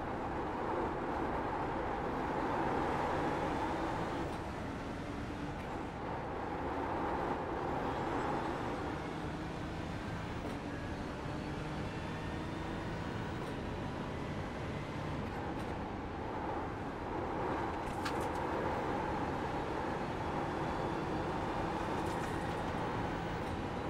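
A racing car engine roars steadily, rising and falling as it shifts gears.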